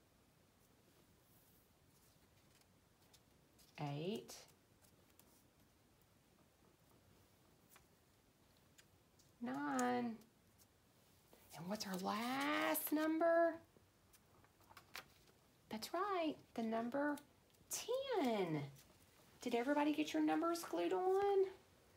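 Paper rustles softly.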